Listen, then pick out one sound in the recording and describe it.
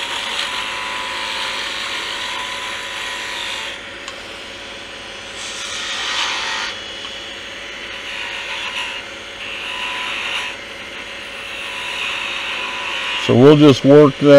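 A chisel scrapes and hisses against spinning wood in bursts.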